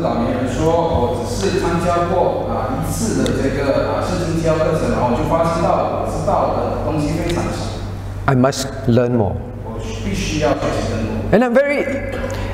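A middle-aged man speaks calmly and steadily into a microphone.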